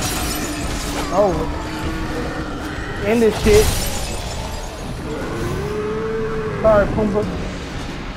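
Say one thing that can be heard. Heavy blows crash and thud.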